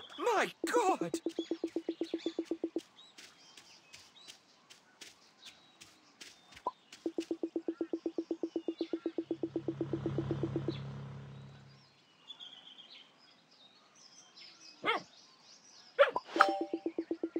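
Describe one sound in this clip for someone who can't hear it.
Rapid soft electronic blips tick in quick bursts.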